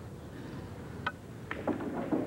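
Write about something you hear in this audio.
A cue stick strikes a billiard ball with a sharp click.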